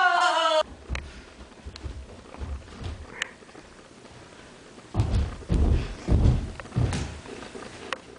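Footsteps thump on wooden stairs.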